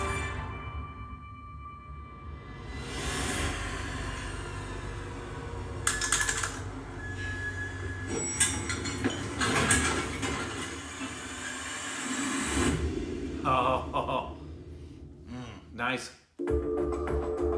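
A film trailer plays with dramatic music and rumbling effects.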